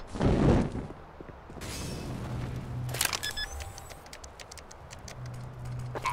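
A bomb keypad beeps as buttons are pressed.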